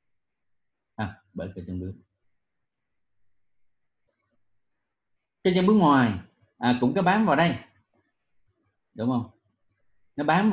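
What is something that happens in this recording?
A man lectures calmly, heard through an online call.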